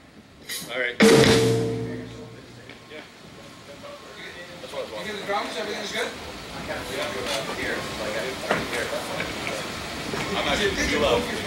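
A band's drums and cymbals strike.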